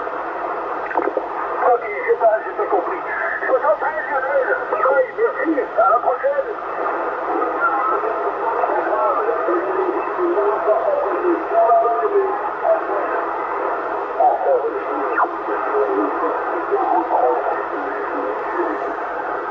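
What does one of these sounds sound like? A man speaks through a crackly radio loudspeaker.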